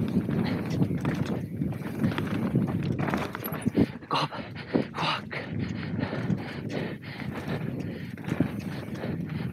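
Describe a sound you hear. A bike's frame and chain rattle and clatter over bumps.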